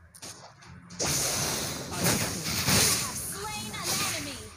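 Game spell effects whoosh and crash in a fast fight.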